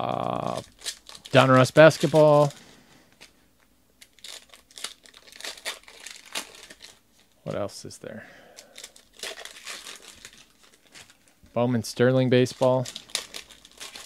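Foil wrappers crinkle and rustle as packs are torn open.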